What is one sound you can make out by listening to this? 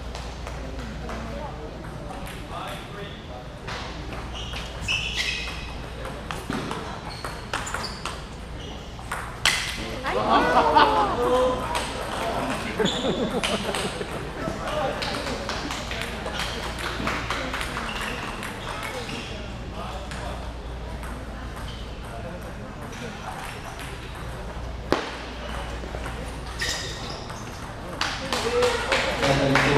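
A table tennis ball clicks back and forth off paddles and the table.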